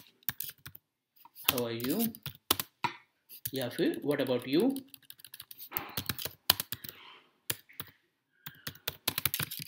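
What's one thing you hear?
Keyboard keys click quickly in bursts.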